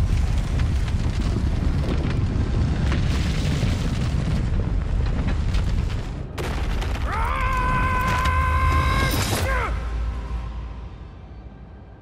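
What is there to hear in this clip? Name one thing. A sandstorm wind roars loudly, then dies away.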